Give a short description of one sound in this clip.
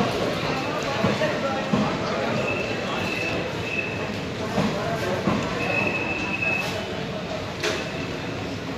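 A passenger train rumbles and clatters steadily past on the rails.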